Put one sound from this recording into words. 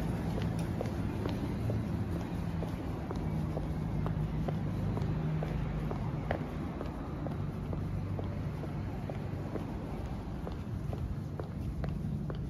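Footsteps tap on a paved sidewalk outdoors.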